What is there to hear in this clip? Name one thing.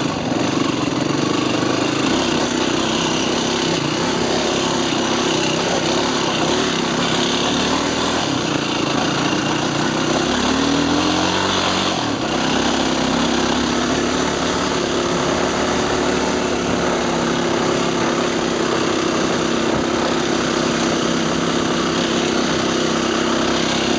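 A dirt bike engine roars loudly and steadily up close.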